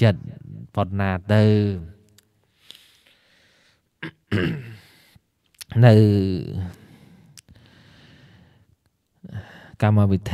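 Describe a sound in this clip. A man speaks slowly and calmly into a microphone, with pauses between phrases.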